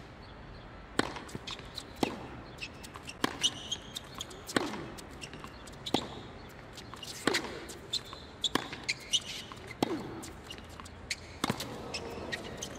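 Rackets strike a tennis ball back and forth in a quick rally.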